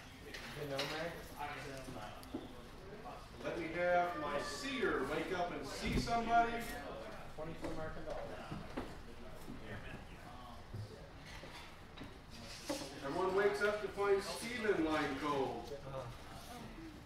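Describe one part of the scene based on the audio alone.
A man speaks with animation close by, in a large room.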